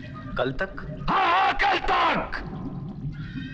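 A man shouts angrily, close by.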